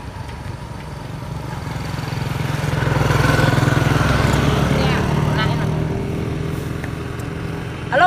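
A motorbike passes by on the road.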